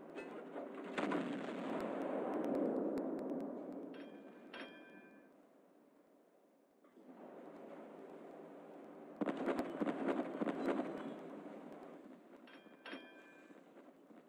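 Shells explode with deep rumbling blasts.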